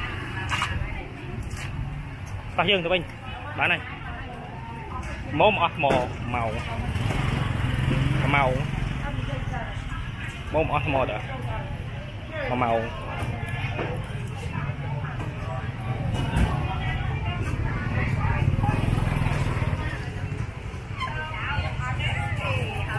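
Motorbike engines rumble nearby.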